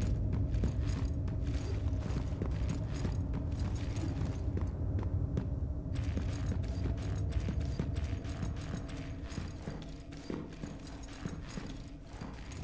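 Footsteps clank quickly on metal stairs and floors.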